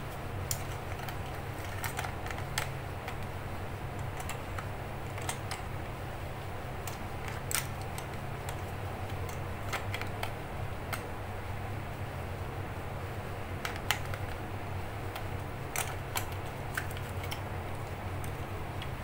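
Plastic clicks and rattles as fingers handle a small device.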